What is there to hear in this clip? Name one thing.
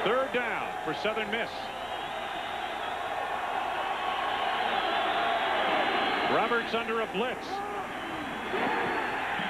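A large crowd roars and cheers in an open stadium, swelling as the play unfolds.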